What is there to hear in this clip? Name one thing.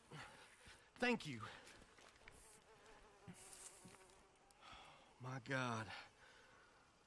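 A man speaks calmly in a low, gruff voice, close by.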